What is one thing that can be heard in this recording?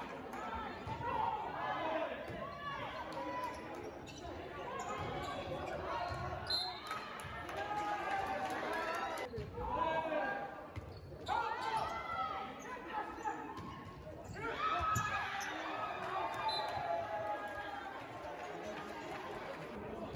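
A crowd of young spectators chatters and cheers loudly in a large echoing gym.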